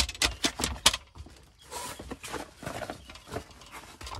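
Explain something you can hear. A paper bag crinkles and rustles.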